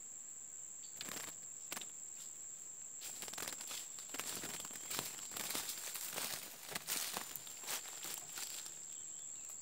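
A small bird flutters and hops about inside a cage.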